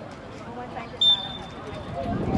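A referee's whistle blows once, briefly.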